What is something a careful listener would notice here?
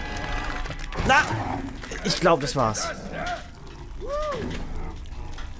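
A monster lets out low, warbling growls and shrieks close by.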